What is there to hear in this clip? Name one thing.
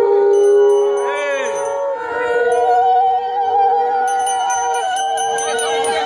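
A small hand bell rings.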